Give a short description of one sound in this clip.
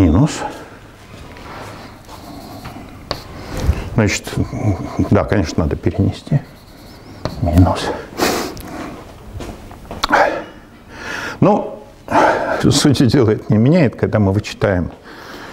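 An elderly man lectures calmly in an echoing room.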